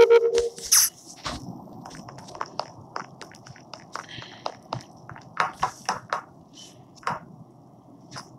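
Quick footsteps tap across a hard floor.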